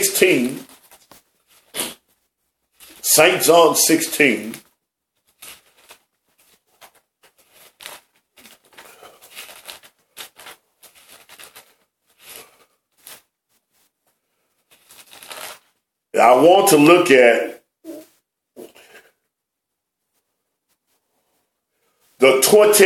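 A middle-aged man speaks calmly and close by, in short bursts.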